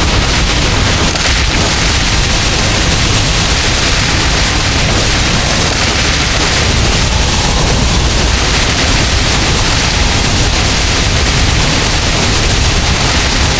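Game spell effects burst and crackle rapidly.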